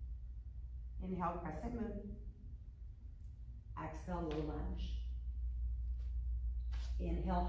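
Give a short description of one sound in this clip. A young woman speaks calmly, giving instructions.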